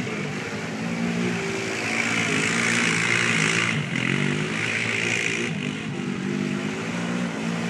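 Tyres splash through mud and puddles.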